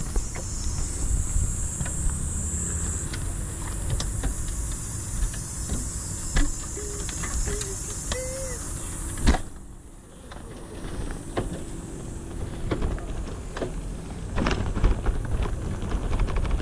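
A bicycle rattles and clatters over a rough path.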